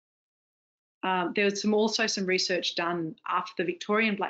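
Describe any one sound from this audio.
A woman speaks calmly into a microphone, heard as over an online call.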